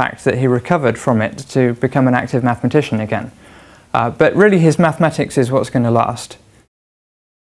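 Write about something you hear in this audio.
A man speaks calmly and clearly into a clip-on microphone, close by.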